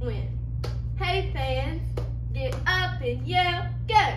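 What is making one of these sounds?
A young woman claps her hands sharply.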